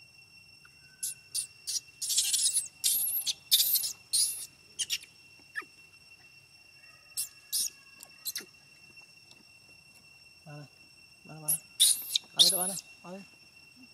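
A baby monkey squeals and shrieks in high, sharp bursts.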